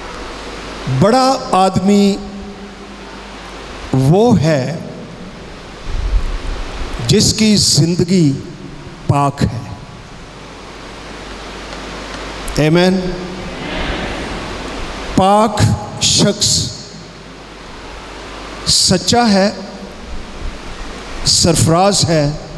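An elderly man speaks with emphasis through a microphone and loudspeakers, pausing between phrases.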